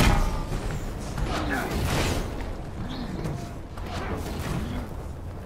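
Footsteps thud quickly on a metal floor.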